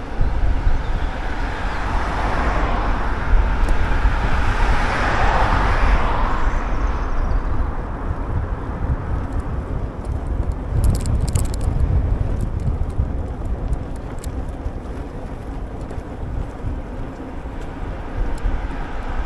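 Wind rumbles and buffets against the microphone.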